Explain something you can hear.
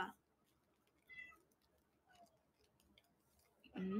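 A young woman chews food noisily close to a microphone.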